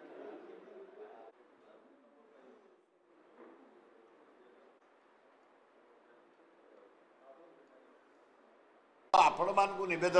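A man talks quietly at a distance.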